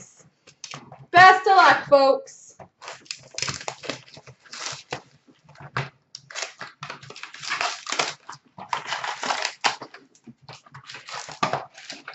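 Paper and plastic packaging rustle and crinkle.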